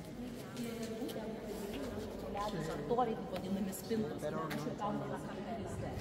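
A crowd of people murmur and chat in a large echoing hall.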